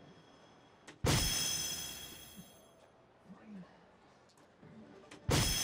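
A dart strikes an electronic dartboard with a sharp thud.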